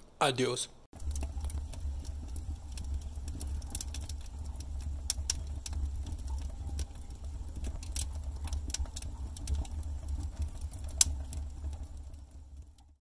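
A wood fire roars and crackles with sharp pops.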